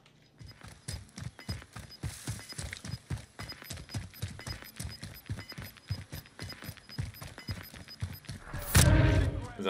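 Quick footsteps run over dirt and gravel.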